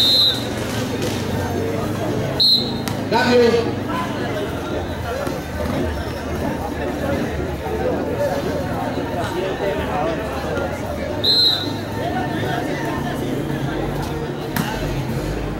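A crowd of young people chatters and calls out outdoors.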